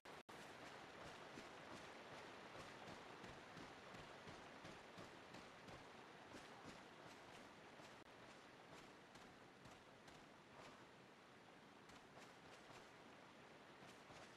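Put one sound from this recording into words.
Footsteps crunch steadily through dry leaves.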